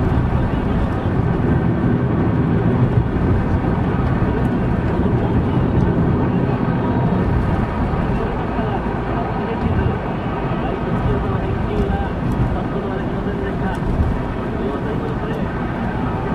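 A car drives steadily along a road, its engine and tyres rumbling from inside.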